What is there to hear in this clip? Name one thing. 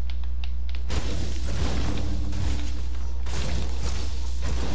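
A pickaxe strikes wood and bushes with sharp thwacks.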